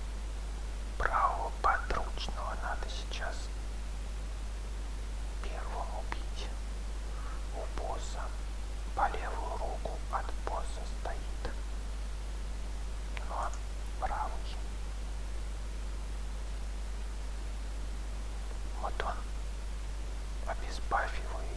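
A young man talks calmly into a microphone, close by, in short bursts.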